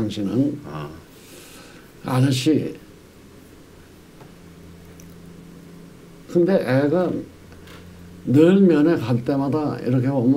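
An elderly man speaks calmly and deliberately into a microphone, with pauses.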